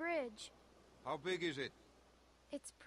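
A man asks a short question calmly.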